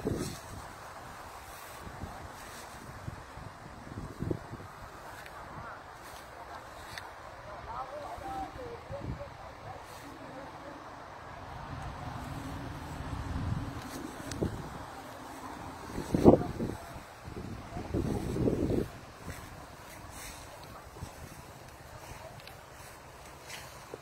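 Wind rustles through leafy branches outdoors.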